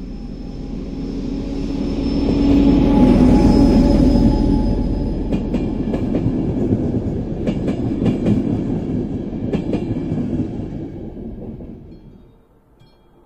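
A diesel locomotive rumbles loudly past close by and fades.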